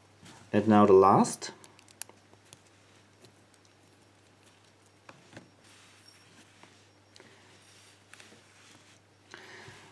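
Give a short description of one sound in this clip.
A metal padlock clicks as it is handled.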